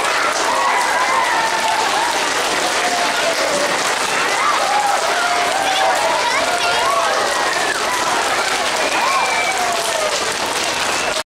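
A choir of children sings together in a large echoing hall.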